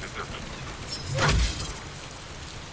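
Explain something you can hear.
A powerful energy blast bursts with a deep boom.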